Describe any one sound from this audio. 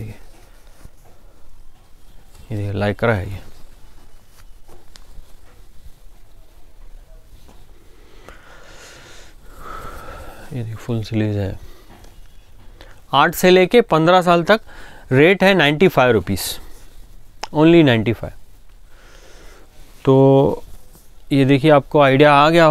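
Cloth rustles as garments are unfolded and laid down.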